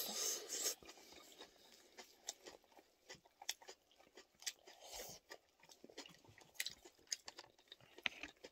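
A woman chews food with loud wet mouth noises close to a microphone.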